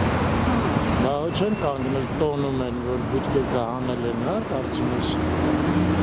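People talk nearby on the street.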